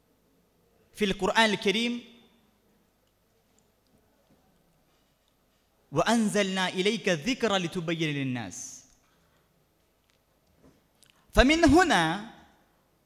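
A young man speaks into a microphone with emotion, in short phrases with pauses.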